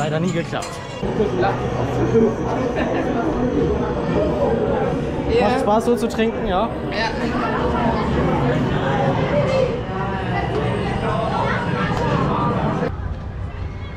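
People chatter nearby in an enclosed space.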